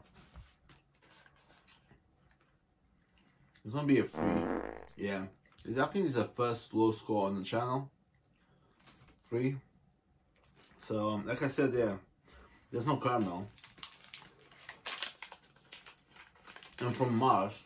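A wrapper crinkles in a man's hands.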